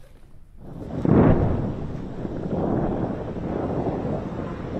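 A distant explosion booms and rumbles on.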